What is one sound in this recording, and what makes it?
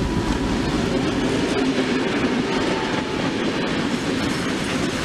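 A Soviet-built two-stroke diesel locomotive roars past under load.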